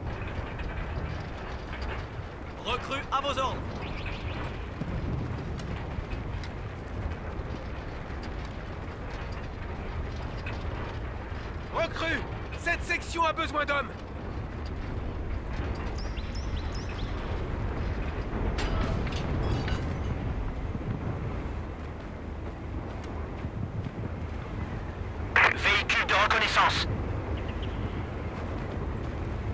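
A low rumble of distant battle rolls on steadily.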